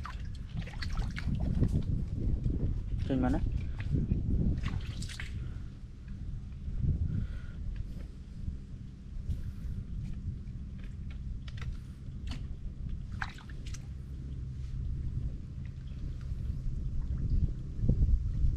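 Hands scrape and tap on rough wood.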